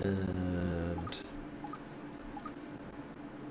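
Soft game menu blips sound as items are selected.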